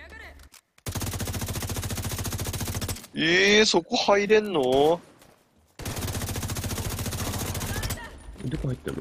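A rifle fires rapid bursts of automatic gunfire.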